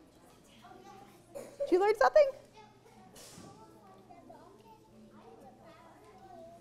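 A woman talks calmly to a group of children.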